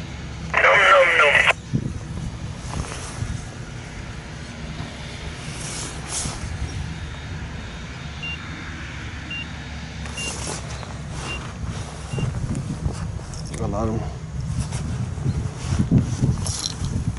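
A forage harvester engine rumbles steadily nearby.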